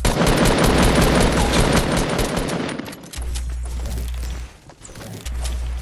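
Wooden walls crack and break under gunfire.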